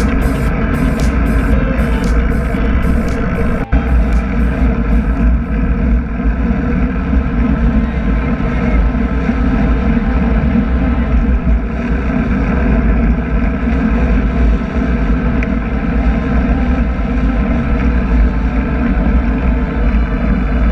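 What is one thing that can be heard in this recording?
Strong wind roars steadily past a moving bicycle.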